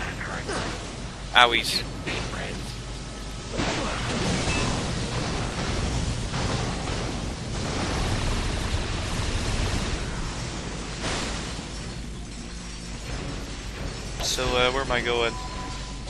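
Electric bolts crackle and zap loudly.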